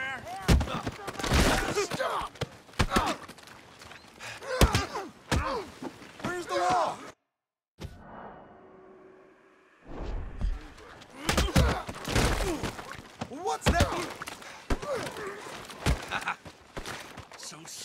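Fists thud in heavy punches during a brawl.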